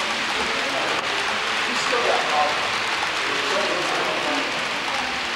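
A model train rattles steadily along its track.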